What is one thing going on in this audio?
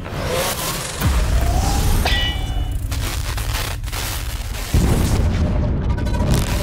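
A swooshing transition sound sweeps past.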